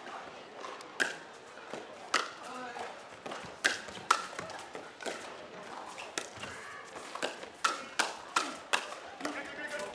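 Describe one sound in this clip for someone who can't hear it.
Paddles smack a plastic ball back and forth in a quick rally.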